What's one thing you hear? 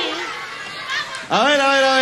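A young woman and a girl laugh nearby.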